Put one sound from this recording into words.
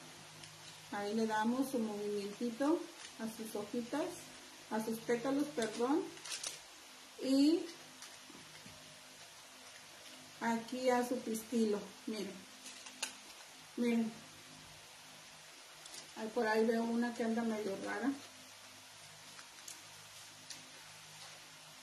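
Stiff paper rustles and crinkles in hands.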